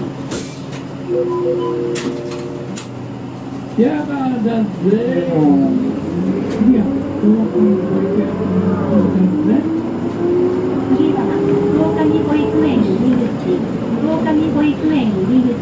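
A vehicle's engine hums steadily.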